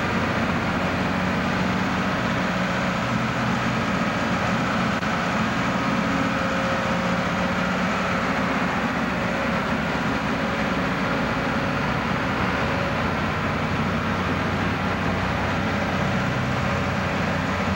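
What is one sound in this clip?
Granular bulk material hisses as it is flung in an arc and pours onto a pile in a large echoing dome.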